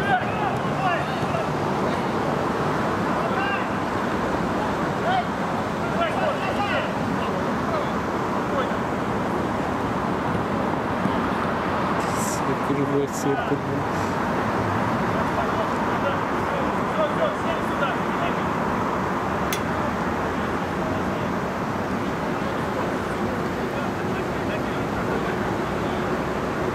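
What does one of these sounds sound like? Players shout to each other across the pitch.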